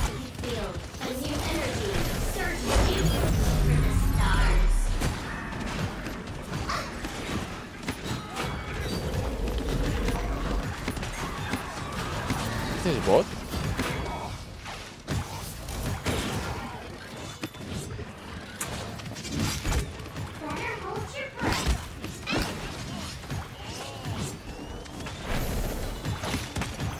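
Game weapons fire and impacts crack rapidly throughout.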